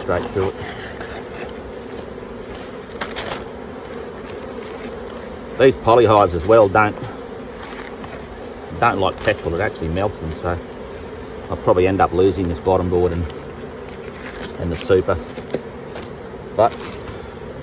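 A plastic sheet rustles and crinkles.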